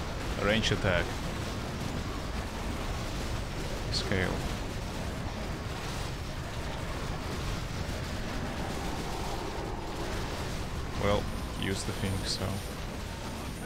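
A man talks close to a microphone in short bursts.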